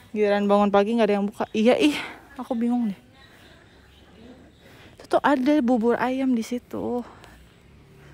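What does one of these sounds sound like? A young woman talks with animation, close to a phone microphone.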